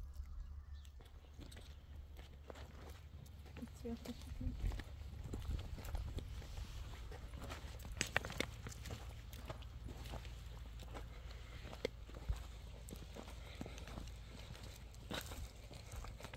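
Footsteps crunch over dry, stony ground.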